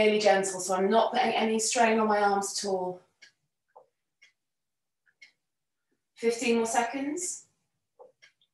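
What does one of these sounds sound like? A woman speaks calmly, giving instructions close to a microphone.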